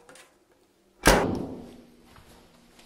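A door slams shut with a loud bang that rings briefly.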